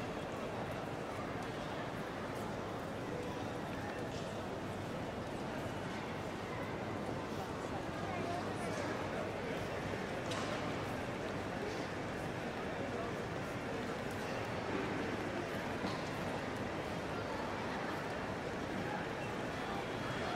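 Footsteps and rolling suitcases clatter on a hard floor.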